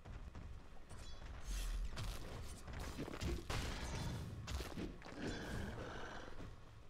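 Game spells crackle and strike in quick bursts during a fight.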